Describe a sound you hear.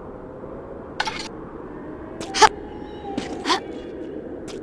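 A metal gate creaks and clanks as it swings open.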